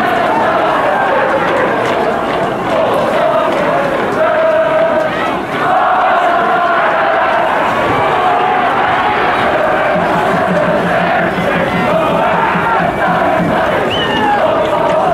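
A group of young men sings and chants loudly together outdoors.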